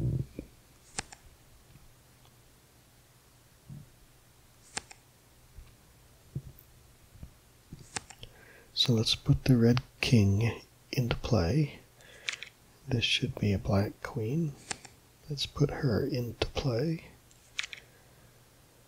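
Playing cards flip and snap softly into place.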